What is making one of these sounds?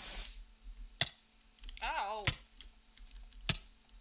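A sword strikes a creature with sharp thuds.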